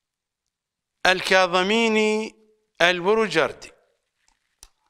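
An older man chants in a slow, melodic voice close to a microphone.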